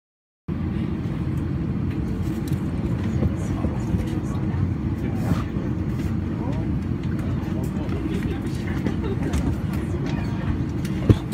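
A jet engine roars steadily at low pitch from inside an aircraft cabin.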